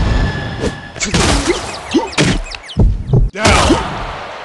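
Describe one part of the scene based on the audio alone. Heavy punches land with loud, sharp smacks.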